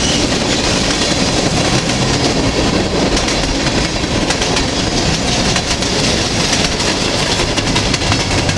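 Steel wheels clatter over rail joints.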